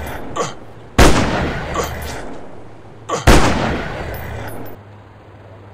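A rifle fires two loud shots that boom and echo away.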